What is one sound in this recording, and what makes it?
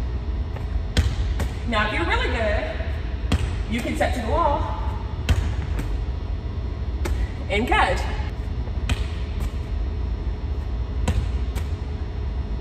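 A volleyball smacks against a wall and is slapped back by hands, again and again, in a large echoing gym.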